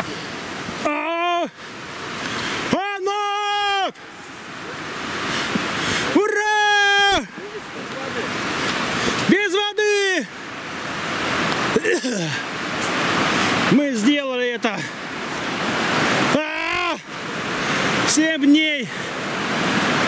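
A river rushes steadily nearby.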